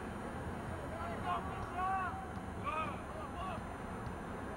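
Men shout from a distance outdoors.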